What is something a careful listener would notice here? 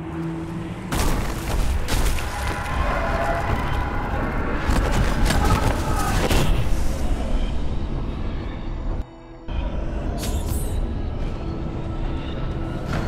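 A fiery portal roars and crackles.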